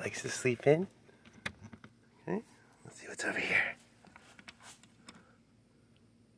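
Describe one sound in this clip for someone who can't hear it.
A metal latch clicks.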